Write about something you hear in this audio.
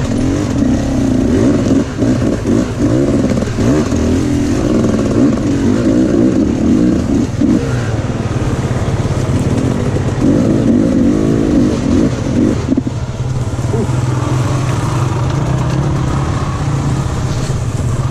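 A dirt bike engine revs loudly close by, rising and falling in pitch.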